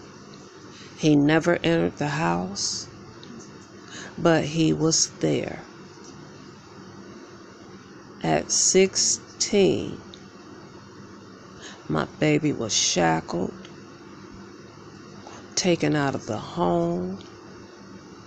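A young woman speaks quietly close by in short bursts.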